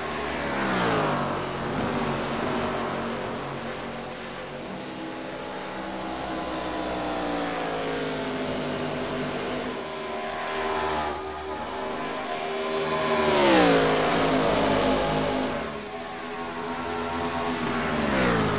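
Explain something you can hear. Race car engines roar, rising and falling in pitch as the cars pass by.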